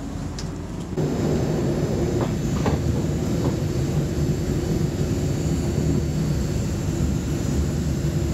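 An electric train rumbles along the track, heard from inside.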